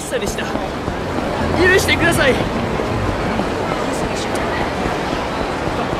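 Quick running footsteps slap on pavement.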